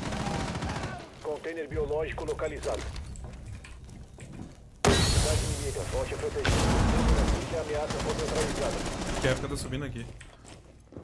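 A man talks into a microphone close by.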